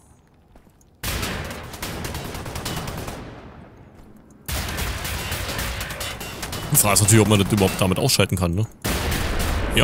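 A machine gun fires rapid, loud bursts.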